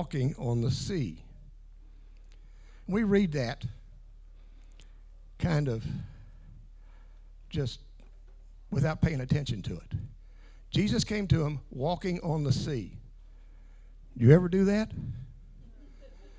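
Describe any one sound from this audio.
An older man speaks with animation through a microphone, heard over loudspeakers in a large room.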